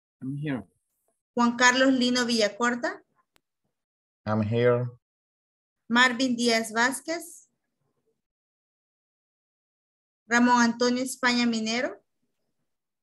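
A young woman speaks in short bursts over an online call.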